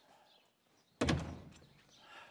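A door slams shut.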